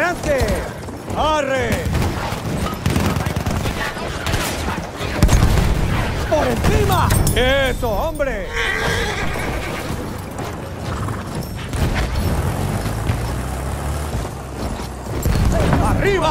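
A horse gallops with heavy hoofbeats.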